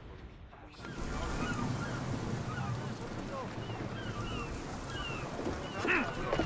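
Water laps gently nearby.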